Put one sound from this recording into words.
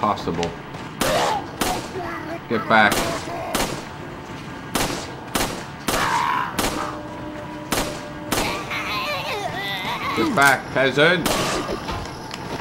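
Pistol shots ring out one after another.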